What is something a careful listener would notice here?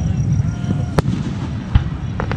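A firework bursts with a sharp, distant bang.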